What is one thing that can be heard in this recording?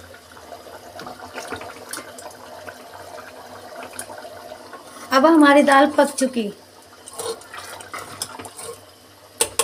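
A spoon stirs and scrapes inside a metal pot of thick liquid.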